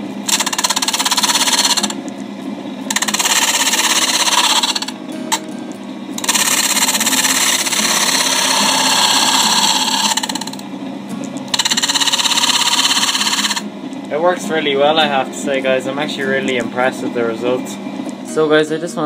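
A sander motor hums steadily.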